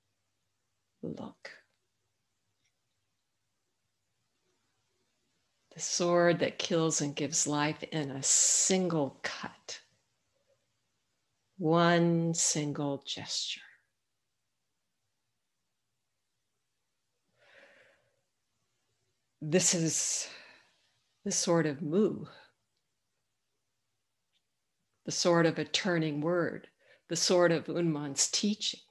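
An older woman speaks calmly over an online call, with pauses.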